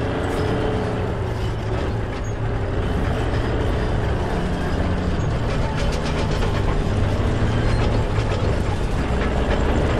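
Tank tracks clank and squeal as the tank rolls past.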